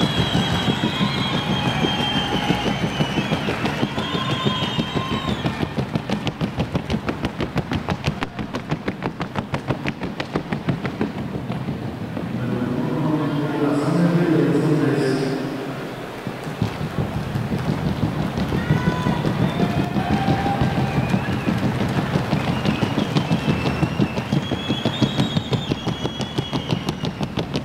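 A horse's hooves stamp quickly and steadily on a hard floor.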